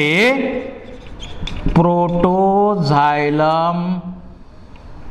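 A man speaks with drawn-out, sung-like words close to a microphone.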